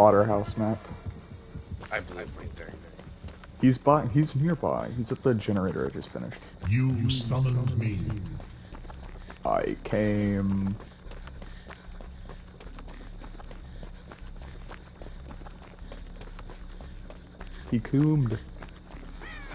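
Footsteps run over dry ground and through rustling grass.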